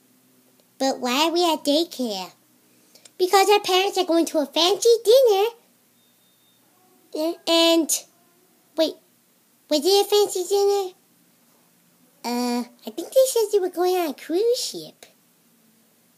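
A child speaks close by in high, playful character voices.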